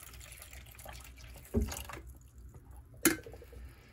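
Water pours into a coffee maker.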